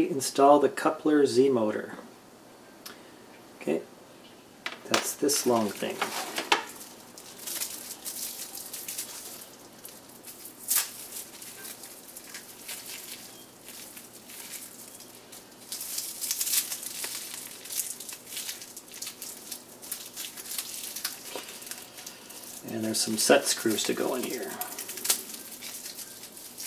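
Plastic bags crinkle and rustle.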